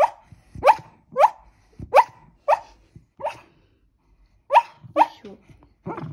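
A small dog whimpers in short, high squeaks.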